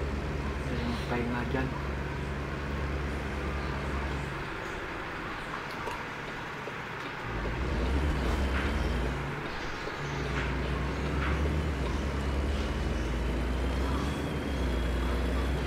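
Tyres roll on a paved road.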